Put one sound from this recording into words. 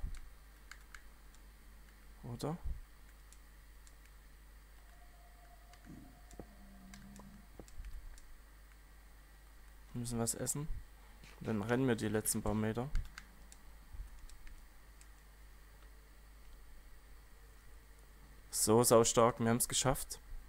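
Fire crackles softly.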